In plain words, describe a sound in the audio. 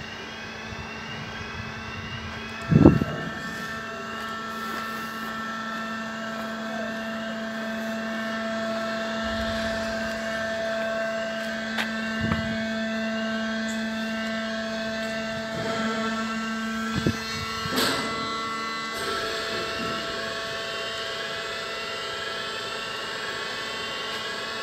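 A level crossing alarm warbles over and over, loud and close.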